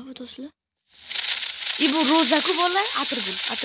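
Firecrackers crackle and pop on the ground.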